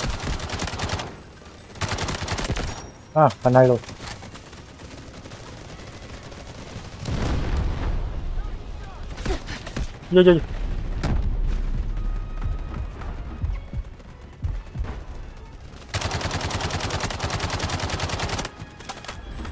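Rapid automatic gunfire rattles in fast bursts.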